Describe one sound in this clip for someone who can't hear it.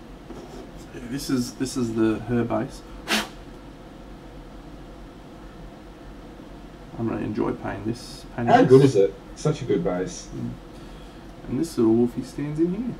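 A man talks casually into a close microphone, in bursts.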